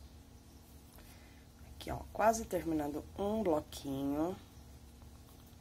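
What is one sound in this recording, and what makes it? Hands rustle and rub soft crocheted fabric.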